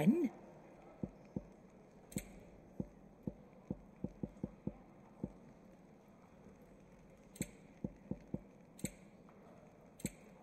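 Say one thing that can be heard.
Short menu clicks tick one after another.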